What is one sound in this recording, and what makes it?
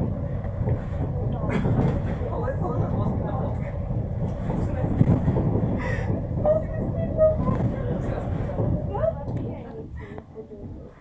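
A funicular car rumbles steadily along its track.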